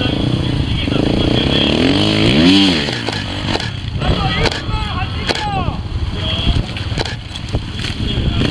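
A motorcycle engine revs and sputters as it climbs.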